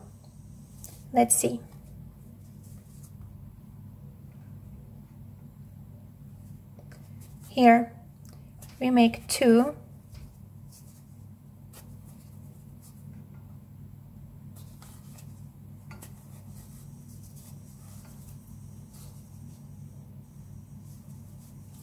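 Thick yarn rustles softly as a crochet hook pulls it through stitches.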